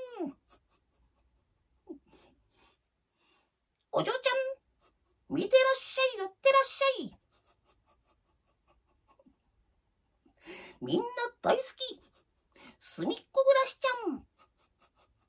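An older woman speaks close by with animation, in short bursts.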